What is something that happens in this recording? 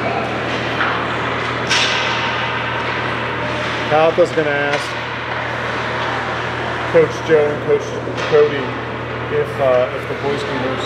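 Skate blades scrape and hiss on ice.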